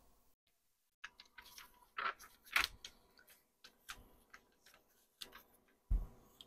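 Gloved hands rustle and slide a sheet of paper across a smooth surface.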